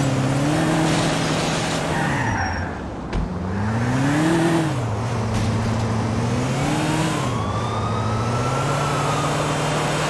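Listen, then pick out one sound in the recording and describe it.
A car engine revs up and down while driving.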